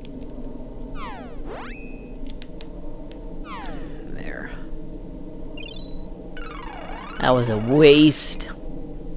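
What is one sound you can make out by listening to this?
A magic spell effect chimes with sweeping tones.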